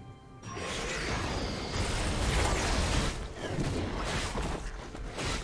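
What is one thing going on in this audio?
Magic spells whoosh and burst in a busy fight.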